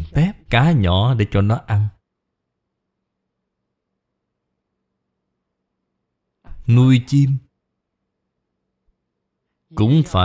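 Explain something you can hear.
An elderly man speaks calmly and slowly into a close microphone, pausing between phrases.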